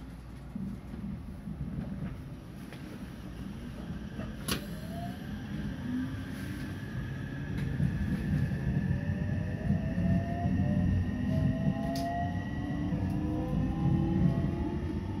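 Train wheels rumble and clatter on the tracks.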